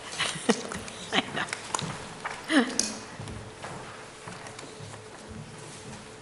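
A middle-aged woman laughs into a microphone.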